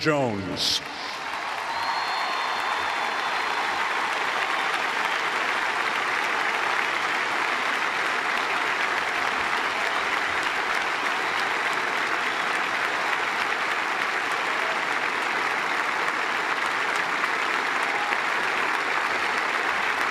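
A large crowd applauds steadily in a big open stadium.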